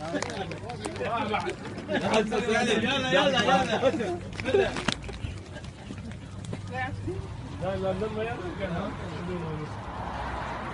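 Men shout and argue loudly nearby.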